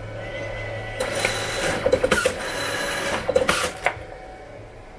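A printer whirs and feeds out a print.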